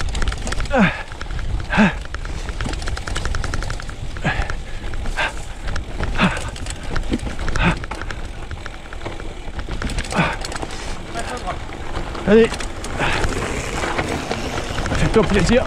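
Bicycle tyres roll and crunch over grass and a rough dirt path.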